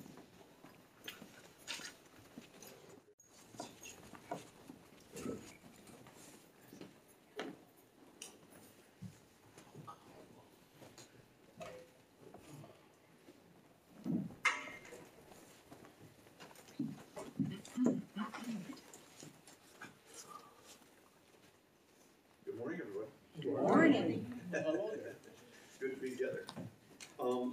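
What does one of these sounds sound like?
An elderly man speaks calmly in an echoing room, with pauses.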